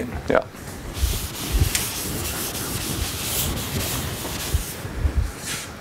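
A cloth wipes across a chalkboard with a soft rubbing hiss.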